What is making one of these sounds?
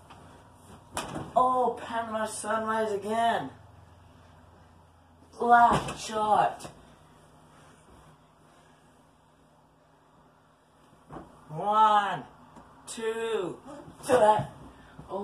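A body thumps and bounces onto a mattress.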